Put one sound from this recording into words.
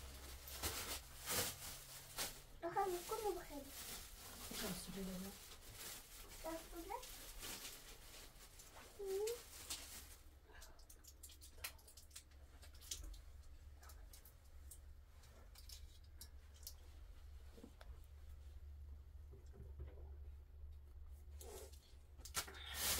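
Blankets and plastic rustle as a small child handles them.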